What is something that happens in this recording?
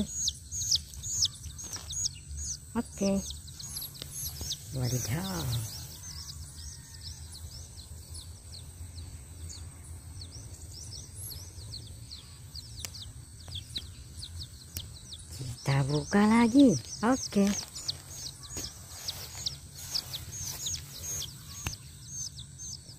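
Chicks chirp in quick, high peeps.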